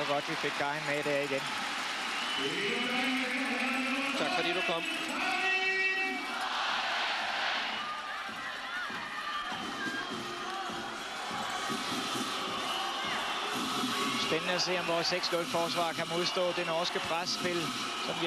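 A large crowd cheers and chants in a big echoing arena.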